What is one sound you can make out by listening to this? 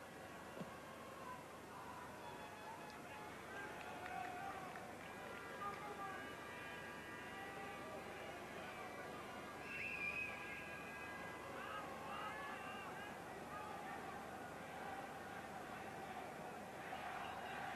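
A large stadium crowd murmurs and calls out steadily.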